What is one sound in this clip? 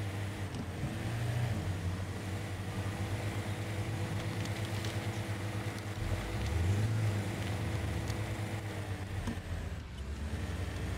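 An off-road truck's engine rumbles steadily as it drives.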